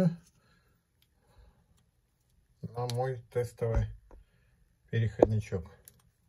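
Fingers handle a small metal ring with faint clicks and rustles.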